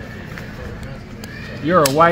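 A plastic buckle clicks shut.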